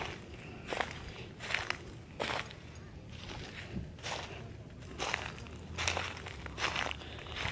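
Footsteps crunch through dry leaves at a steady walking pace.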